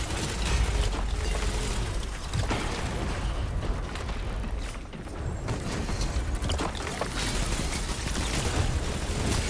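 Video game gunfire crackles rapidly.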